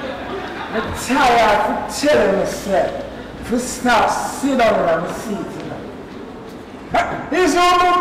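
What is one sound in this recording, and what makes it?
A man speaks loudly and with animation, in a hall that echoes.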